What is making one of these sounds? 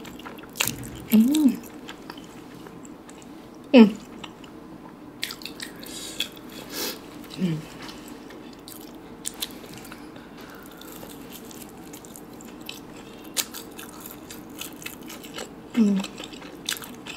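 A young woman hums with pleasure between bites.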